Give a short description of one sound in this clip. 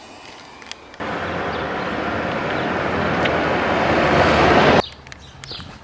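A car drives past on a street.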